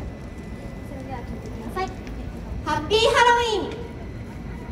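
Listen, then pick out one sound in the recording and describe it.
A young woman speaks with animation into a microphone through loudspeakers.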